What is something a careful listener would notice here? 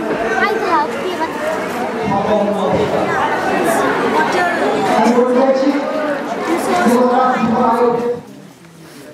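A crowd of children chatters and calls out loudly nearby.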